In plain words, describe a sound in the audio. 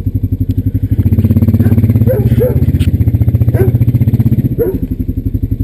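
A quad bike engine revs up louder, then settles back.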